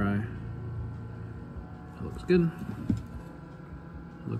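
A small electronic part clicks softly as it is handled.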